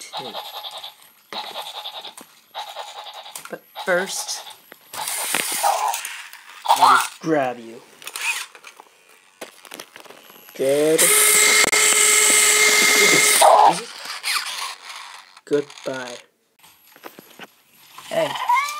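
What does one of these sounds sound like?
A toy robot's motor whirs as it rolls across the floor.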